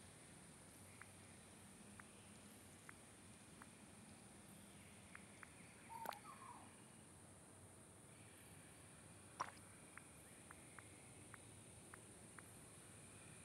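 Soft menu clicks tick now and then as a selection moves.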